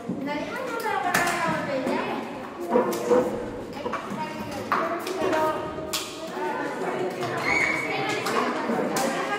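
Children and young people chatter and talk loudly at once in a room with some echo.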